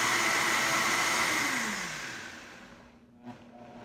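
A blender whirs loudly and then winds down.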